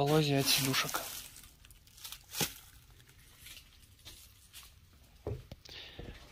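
Plastic wrapping crinkles and rustles as it is handled close by.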